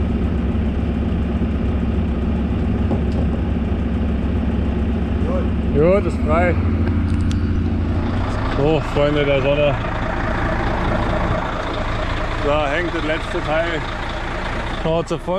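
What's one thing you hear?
A vehicle engine idles with a low steady hum.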